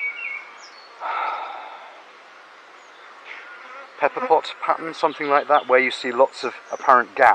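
Bees buzz around an open hive.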